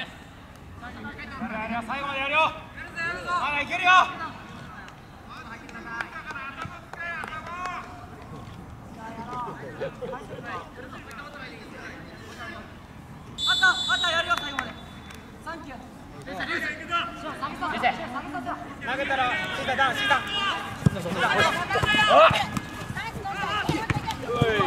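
Young men shout to each other outdoors across a playing field.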